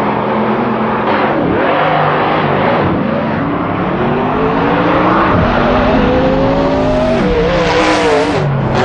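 Race car engines roar loudly, rising in pitch as they speed up and shift gears.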